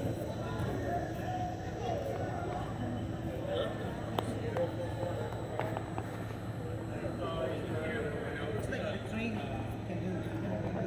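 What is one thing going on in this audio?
A tram rolls slowly along the tracks.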